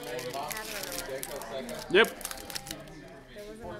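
A foil card wrapper crinkles in someone's hands.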